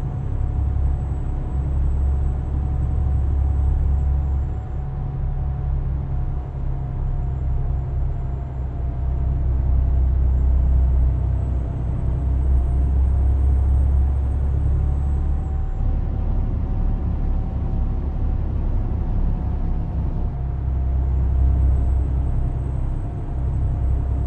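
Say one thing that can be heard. A truck engine drones steadily in a low rumble while driving.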